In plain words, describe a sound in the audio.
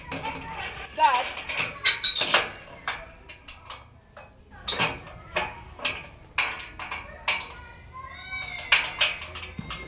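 A metal gate rattles and clanks.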